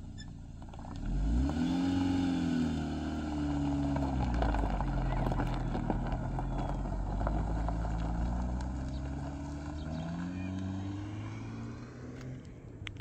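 A car pulls away and drives off, fading into the distance.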